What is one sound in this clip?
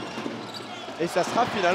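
A crowd cheers loudly in an echoing arena.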